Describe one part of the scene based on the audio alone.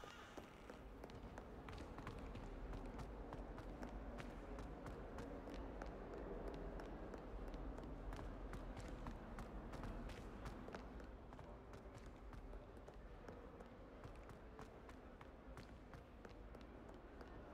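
Quick footsteps patter on a stone floor in a large echoing hall.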